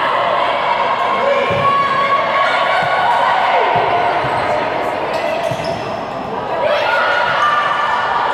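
Young women shout and call out to each other across an echoing indoor court.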